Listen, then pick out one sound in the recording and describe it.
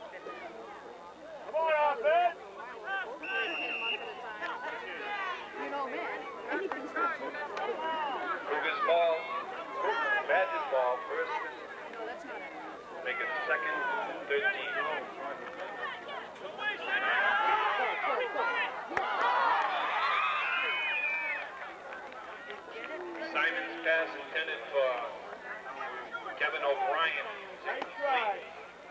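A crowd of spectators talks and cheers outdoors nearby.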